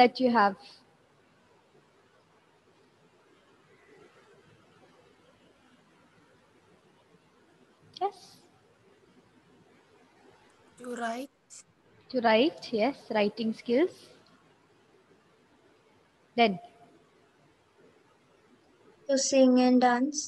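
A woman speaks calmly into a microphone in short bursts with pauses.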